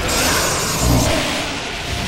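Electricity crackles and sizzles.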